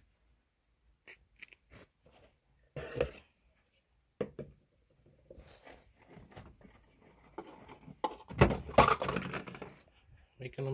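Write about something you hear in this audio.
Stiff plastic containers crinkle and clatter as they are handled.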